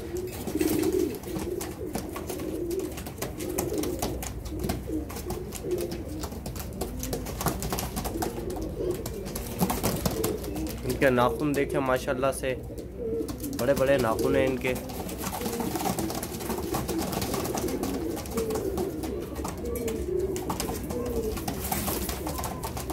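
Pigeons coo in low, throaty warbles.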